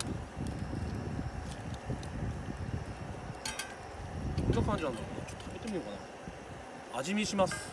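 Metal tongs clink against a metal pot.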